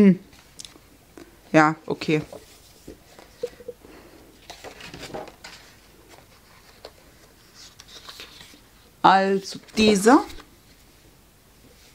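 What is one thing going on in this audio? Sheets of stiff paper rustle and flap as they are handled.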